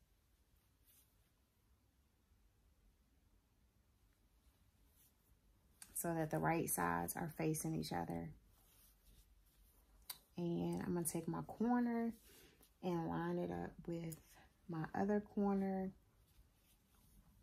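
Soft crocheted fabric rustles as hands handle and fold it.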